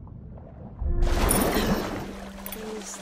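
A swimmer bursts up out of the water with a loud splash.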